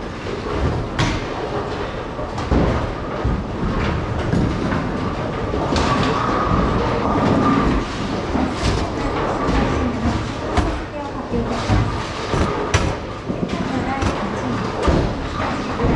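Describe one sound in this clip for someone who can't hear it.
Bowling pins crash and clatter now and then.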